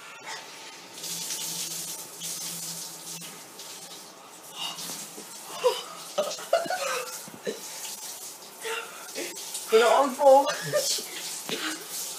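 Water sprays from a shower in a small echoing room.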